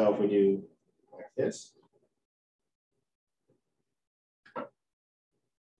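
A man speaks briefly through a microphone, then falls silent.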